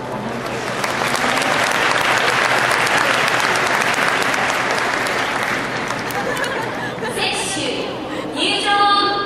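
A large crowd applauds in a wide open stadium.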